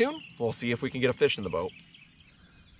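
A young man talks calmly and close by.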